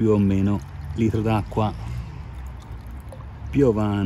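Liquid pours from a bottle into a plastic jug.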